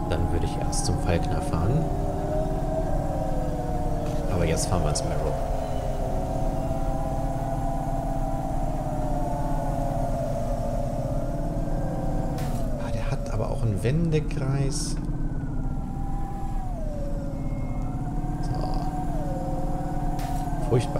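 A futuristic car engine hums steadily and shifts in pitch as the car flies along.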